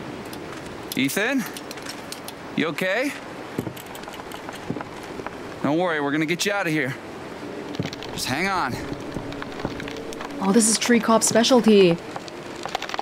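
A young man speaks calmly and reassuringly.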